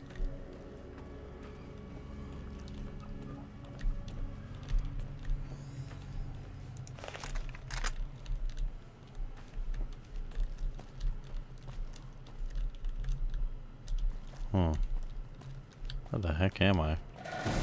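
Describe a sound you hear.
Footsteps crunch on gravel and rock.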